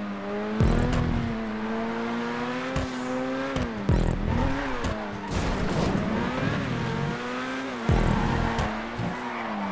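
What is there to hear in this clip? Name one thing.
A race car engine revs high and shifts gears repeatedly.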